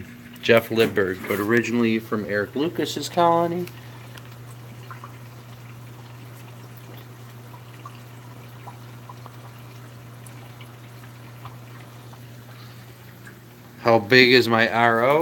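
A water pump hums steadily.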